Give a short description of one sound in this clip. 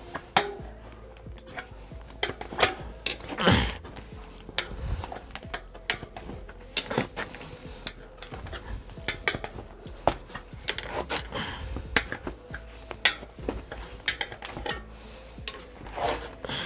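A rubber tyre squeaks as hands work it onto a rim.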